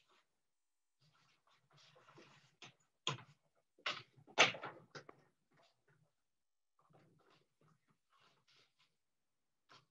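Wooden loom parts knock and clack.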